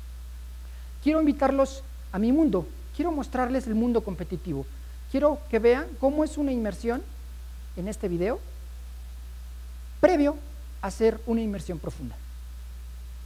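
A man speaks with animation through a microphone to an audience.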